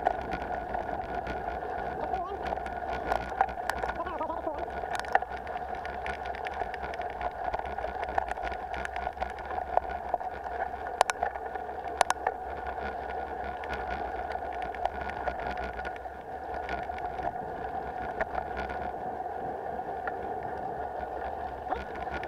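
Wind rumbles against a nearby microphone.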